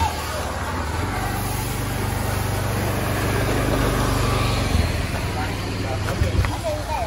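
A motor scooter rides past close by.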